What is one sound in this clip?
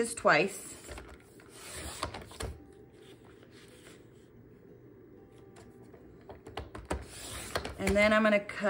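A paper trimmer blade slides with a scraping hiss as it cuts paper.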